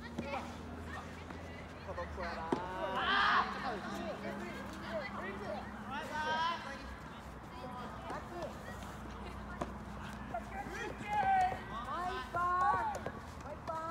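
A tennis ball is struck by a racket with a sharp pop.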